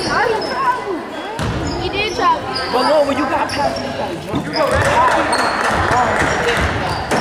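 Spectators talk and cheer nearby in a large echoing gym.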